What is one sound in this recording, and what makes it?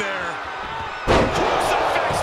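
A wrestler's body slams hard onto the ring mat.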